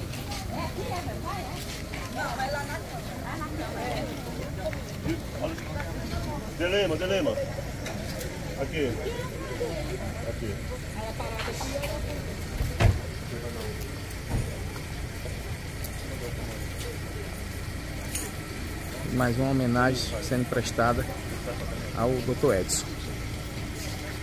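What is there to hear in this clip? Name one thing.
A crowd of men and women murmur and chat outdoors.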